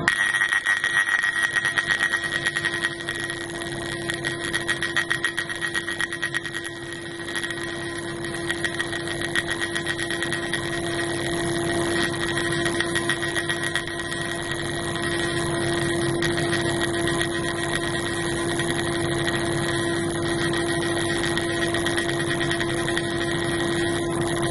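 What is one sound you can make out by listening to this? A laser fires into liquid with a fast, steady crackling buzz.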